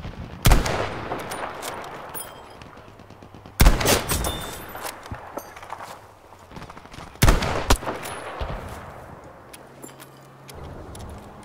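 A rifle bolt clacks as it is worked.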